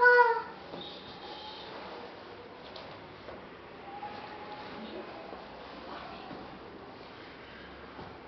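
Young children talk and call out faintly in a room.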